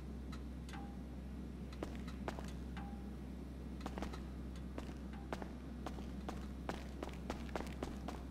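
Footsteps tap on a hard floor in an echoing space.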